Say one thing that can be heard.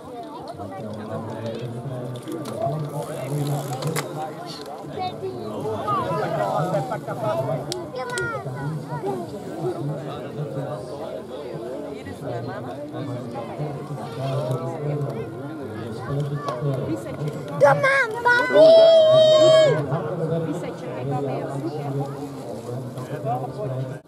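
Spectators chat and call out outdoors, close by.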